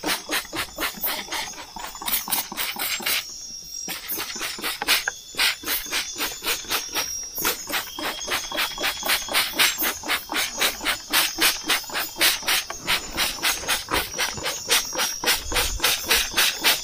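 A spray bottle squirts in quick, repeated pumps.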